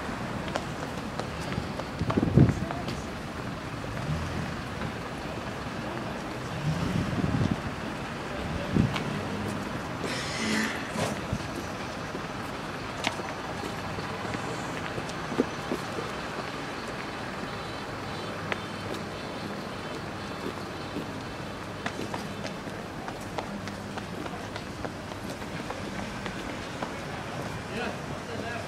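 Footsteps walk on pavement outdoors.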